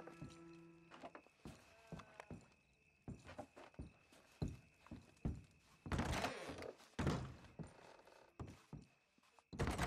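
Boots thud on a wooden floor at a walking pace.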